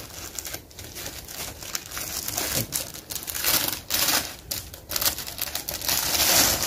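Plastic wrapping crinkles and rustles in a man's hands.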